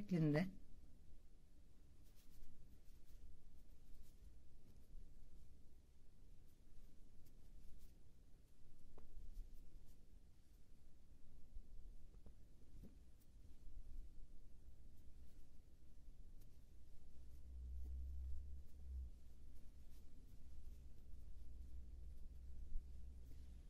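A crochet hook and yarn rustle softly close by.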